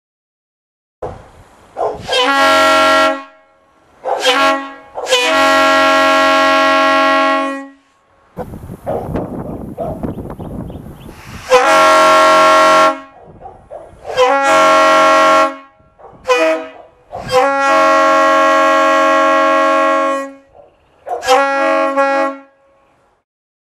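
Loud air horns blare in short and long blasts outdoors.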